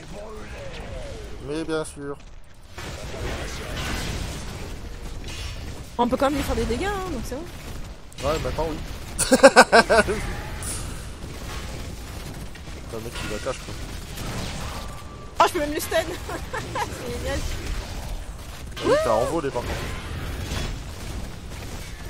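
Magic blasts and weapon clashes burst out in a fast battle.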